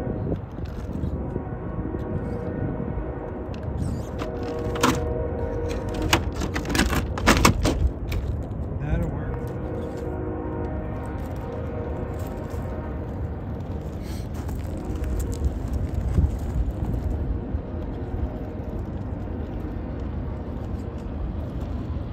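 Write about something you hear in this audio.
Plastic tyres crunch and scrape over loose rocks.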